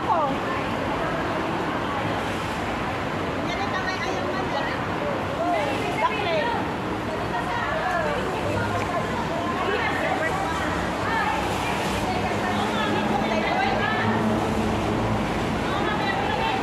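Young women chatter and laugh nearby outdoors.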